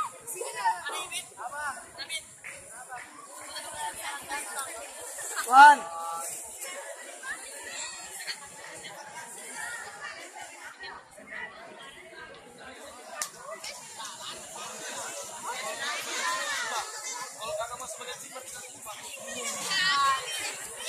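A crowd of young people chatter and call out outdoors at night.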